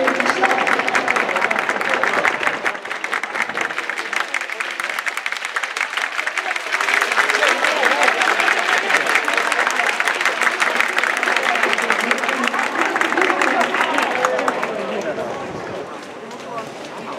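Spectators close by shout with excitement.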